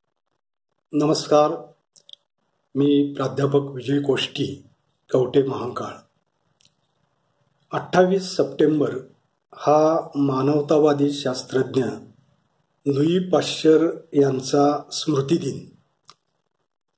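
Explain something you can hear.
A middle-aged man speaks calmly and close to the microphone, in short phrases with pauses.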